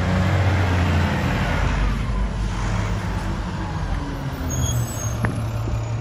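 A garbage truck's diesel engine rumbles loudly close by.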